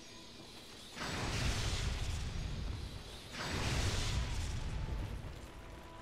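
A lightning spell crackles and booms.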